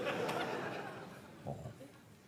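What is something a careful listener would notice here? An audience laughs and applauds in a large hall, then fades.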